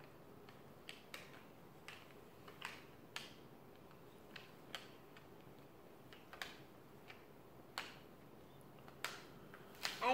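A small plastic toy clicks and taps in a child's hands.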